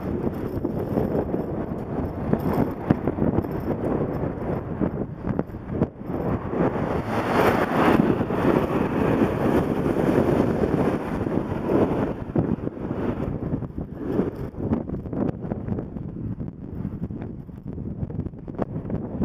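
Wind buffets a microphone outdoors, rumbling steadily.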